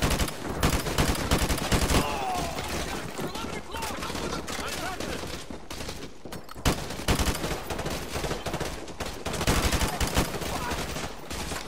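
Rapid gunfire bursts echo loudly in an enclosed space.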